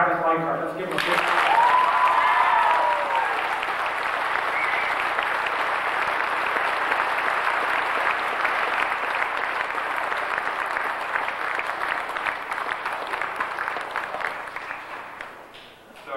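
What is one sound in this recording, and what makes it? An audience claps and cheers steadily.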